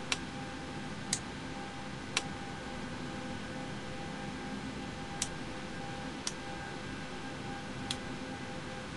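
Switches click sharply several times.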